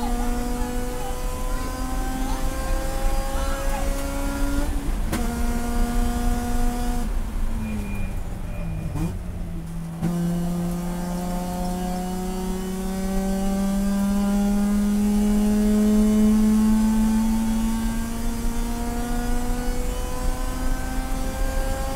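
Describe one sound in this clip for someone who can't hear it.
A racing car engine roars loudly from inside the car, climbing in pitch through the gears and dropping as it slows.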